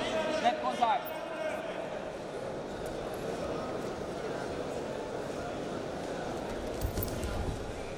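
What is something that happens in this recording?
Wrestling shoes squeak on a mat.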